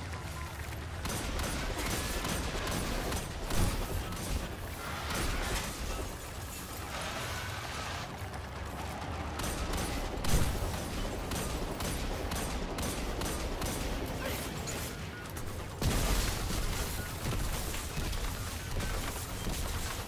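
Rapid gunfire crackles and bursts.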